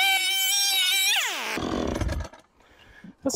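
A chainsaw engine runs loudly, then winds down and stops.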